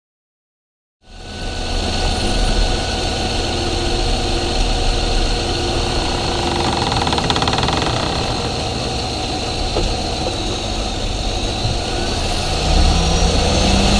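A car engine runs steadily up close, with a loud whirring roar.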